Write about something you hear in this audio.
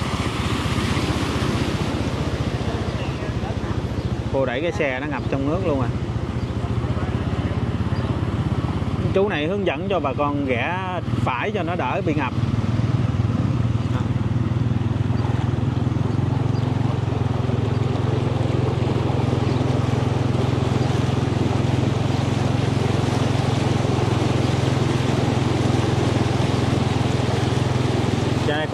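Water sloshes and splashes as someone wades through it.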